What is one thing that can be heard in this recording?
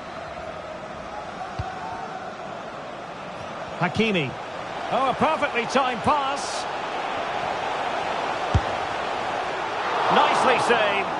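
A large stadium crowd roars steadily, swelling near the end.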